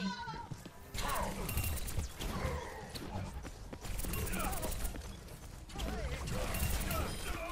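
Twin pistols fire rapid bursts of shots.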